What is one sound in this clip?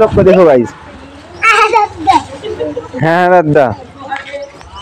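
Young children talk and laugh close by.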